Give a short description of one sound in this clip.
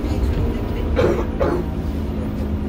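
A man speaks loudly to passengers from nearby.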